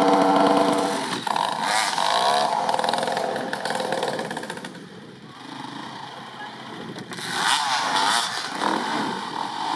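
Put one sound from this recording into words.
Two dirt bike engines idle and rev up close.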